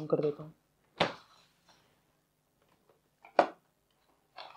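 Cardboard packaging knocks and scrapes as it is moved about.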